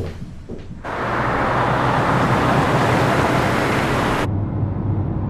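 Tyres roll along a road.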